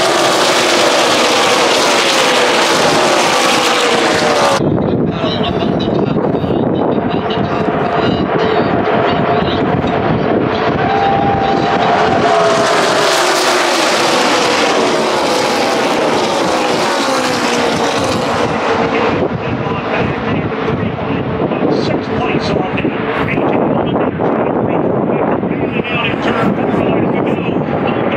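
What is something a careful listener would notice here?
Race car engines roar loudly and rise and fall in pitch as cars speed past.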